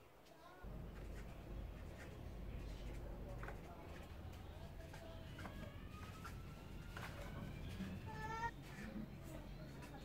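A marker squeaks on a board.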